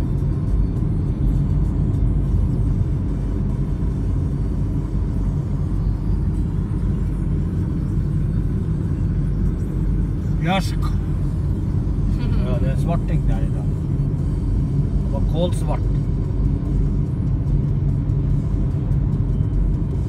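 A car engine hums with steady road rumble from inside the car.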